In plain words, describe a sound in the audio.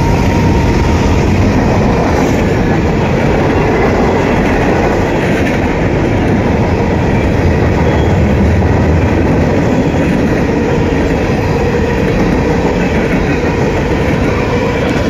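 A long freight train rumbles past close by.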